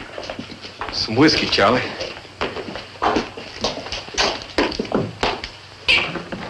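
An elderly man speaks in a gruff voice.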